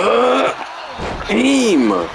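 A heavy body slams onto a wrestling mat with a dull thud.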